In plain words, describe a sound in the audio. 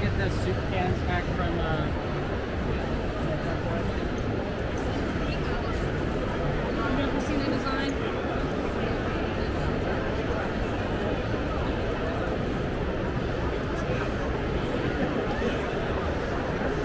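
A large crowd chatters steadily in a big echoing hall.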